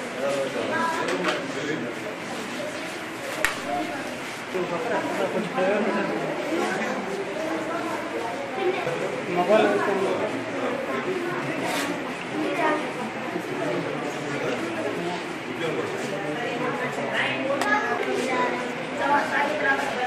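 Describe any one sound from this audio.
A man talks calmly to a group of children nearby.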